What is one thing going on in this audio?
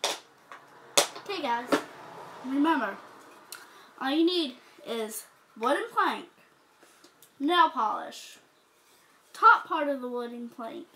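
A young girl talks close by with animation, in short bursts.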